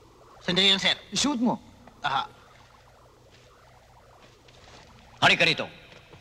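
A man speaks loudly in short bursts, close by.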